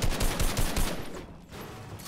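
Rapid gunshots crack from a video game.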